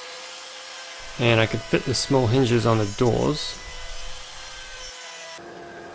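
A trim router whirs as it cuts into wood.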